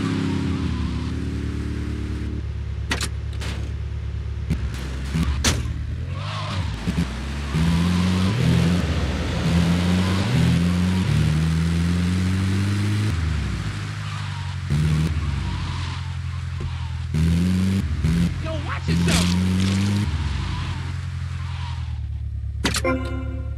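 An ambulance engine roars steadily, rising and falling in pitch as it speeds up and slows down.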